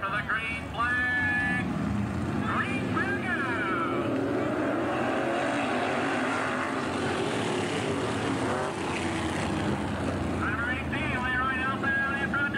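Race car engines roar and whine as the cars speed around a track.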